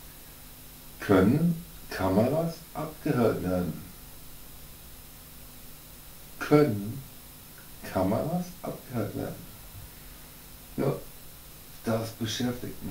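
A man speaks calmly in short phrases close by.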